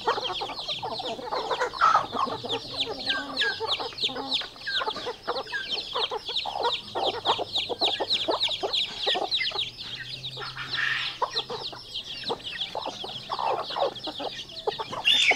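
Hens cluck softly.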